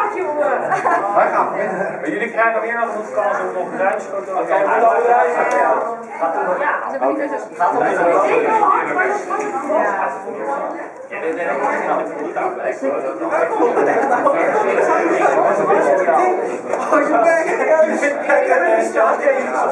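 Several young men talk and laugh with animation nearby.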